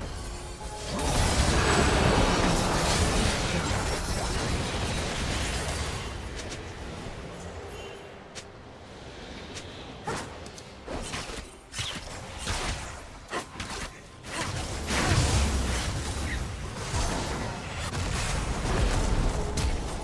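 Magic blasts and explosions crash in a fast fight.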